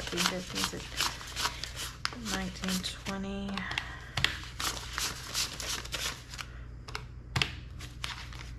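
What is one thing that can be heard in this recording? Paper banknotes rustle and flick quickly as they are counted by hand.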